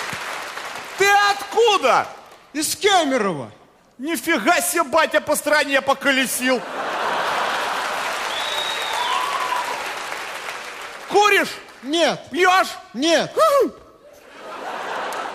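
A young man answers loudly into a microphone.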